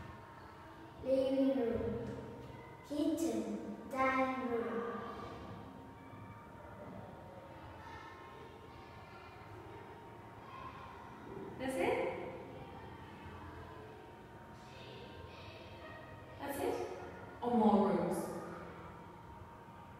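A woman speaks slowly and clearly close by.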